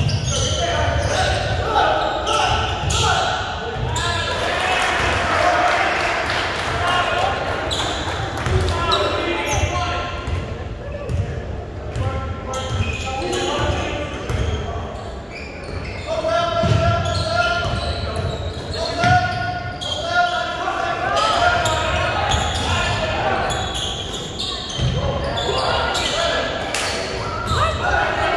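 Spectators talk and call out around a basketball court.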